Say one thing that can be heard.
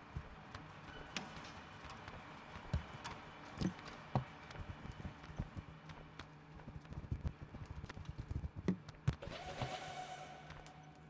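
Footsteps patter on a hard floor.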